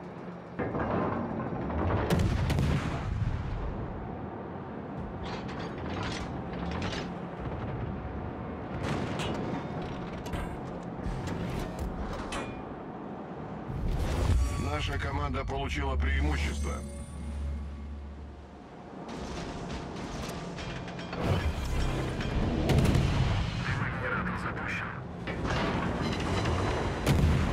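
Waves rush and splash against a ship's hull.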